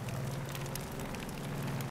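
Flames crackle.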